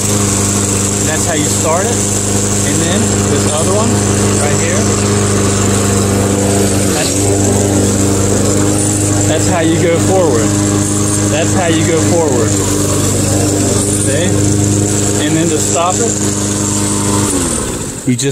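A lawn mower engine runs with a steady loud drone, then cuts off.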